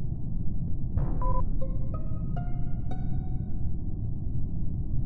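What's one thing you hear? A game alarm sounds with a rising series of ringing tones.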